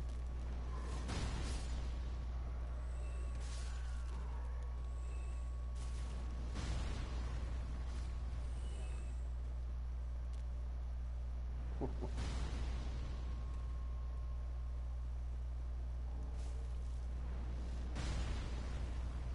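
A blade swooshes through the air and strikes with sudden thuds.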